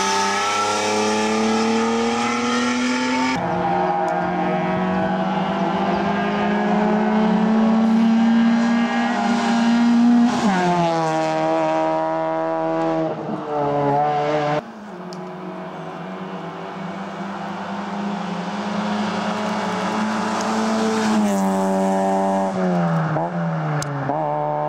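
Rally car engines roar loudly, revving up and dropping as they change gear.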